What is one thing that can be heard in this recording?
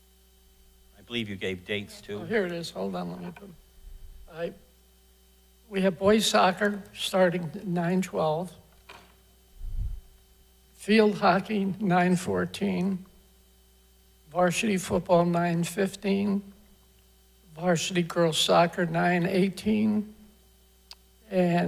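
An elderly man reads aloud steadily into a microphone, with pauses.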